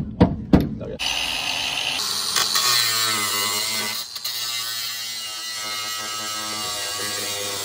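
A cordless power tool whirs steadily.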